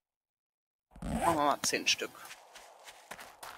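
Footsteps tread on grass and dirt.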